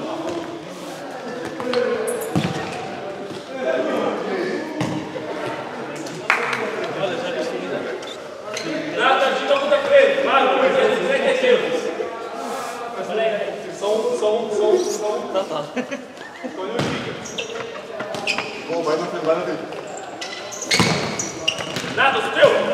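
A ball thuds as players kick it in an echoing hall.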